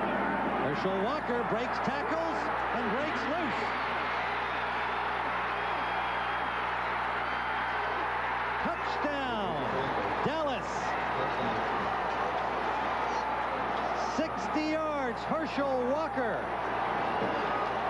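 A large crowd roars and cheers loudly in a stadium.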